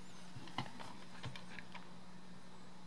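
Buttons on a toy remote control click.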